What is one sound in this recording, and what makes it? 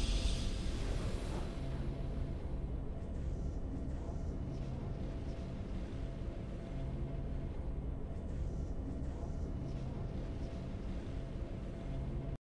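A slow, low game victory tune plays steadily.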